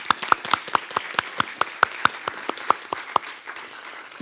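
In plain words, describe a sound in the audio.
People clap their hands in a room.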